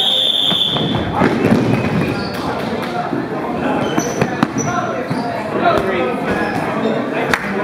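Sneakers squeak and thud on a wooden floor as players run.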